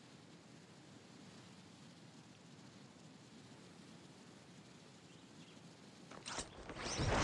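Wind rushes steadily past during a fast fall through the air.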